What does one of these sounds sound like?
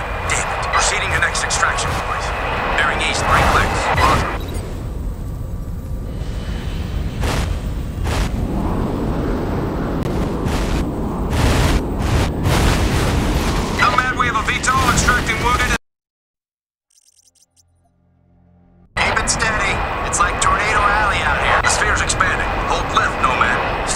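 An aircraft's engines roar steadily.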